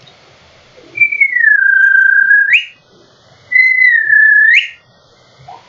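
A man lets out long, high-pitched shrieks close to a microphone.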